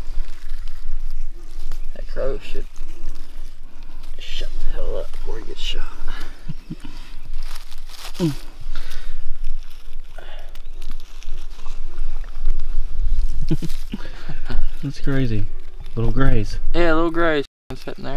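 Dry leaves rustle and crunch as hands pick through them.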